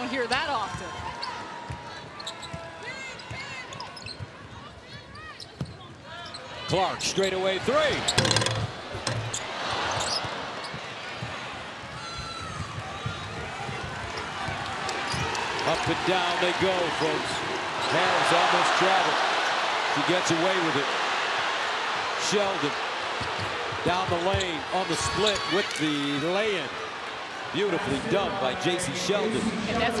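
A crowd murmurs and cheers in a large echoing arena, growing louder.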